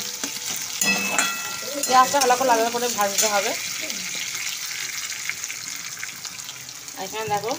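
Vegetables sizzle in a hot pan.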